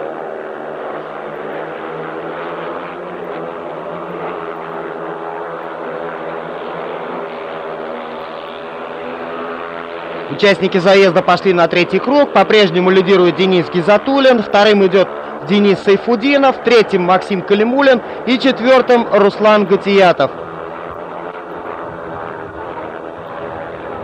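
Motorcycle engines roar as the bikes race around a dirt track.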